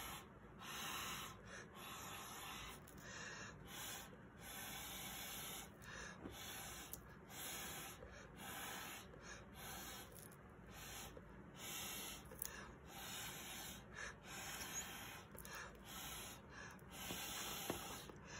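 Air hisses through a tube in short, repeated bursts.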